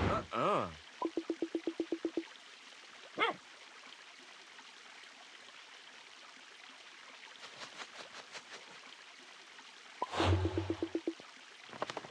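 Quick electronic blips tick in a rapid run.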